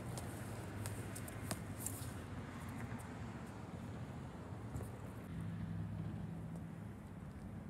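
Shoes scuff and tap on a hard outdoor court.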